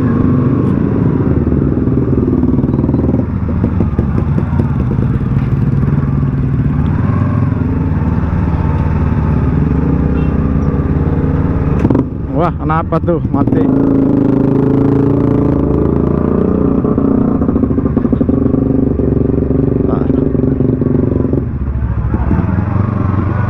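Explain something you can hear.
Other motorcycle engines idle and rev nearby.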